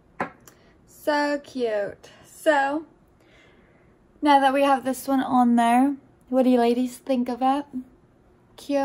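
A young woman speaks close to a microphone in a soft, lively voice.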